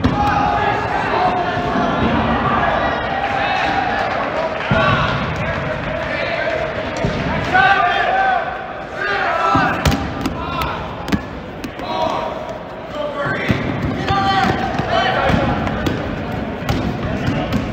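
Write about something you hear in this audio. Rubber balls bounce and smack on a hard floor.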